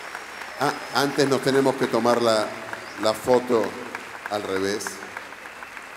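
A man speaks loudly and with animation through a microphone in a large echoing hall.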